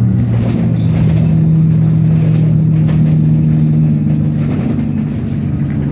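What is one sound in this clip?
An engine hums steadily from inside a moving vehicle.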